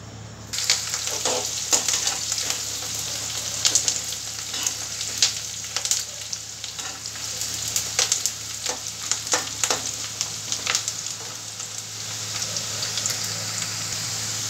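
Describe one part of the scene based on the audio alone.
A metal spoon scrapes and clinks against a pan.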